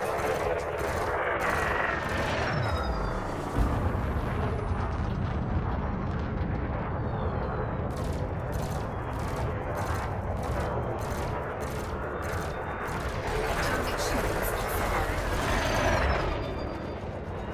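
A spacecraft engine roars steadily.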